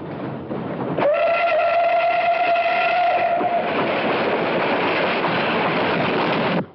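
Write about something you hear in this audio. A steam train rumbles and hisses as it passes.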